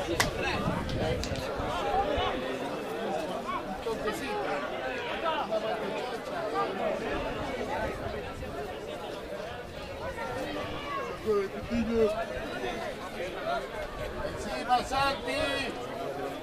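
Men shout to one another across an open field, at a distance.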